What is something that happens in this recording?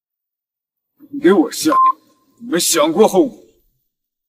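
A young man speaks sharply and threateningly.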